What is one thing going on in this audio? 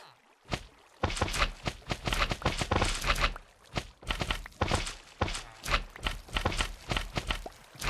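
Glassy blocks shatter and crack in quick bursts.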